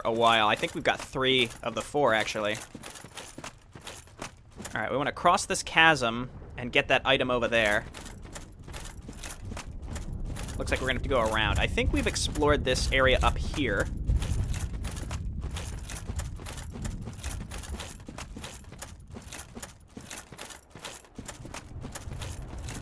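Heavy armoured footsteps thud and clink steadily on soft ground.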